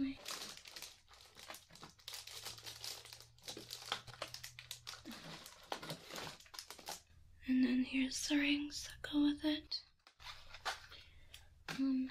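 Plastic packaging crinkles and rustles as hands rummage through it.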